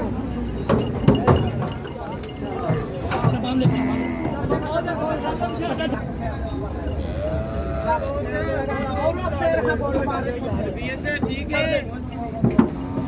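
Bull hooves clatter on a truck's metal tailgate.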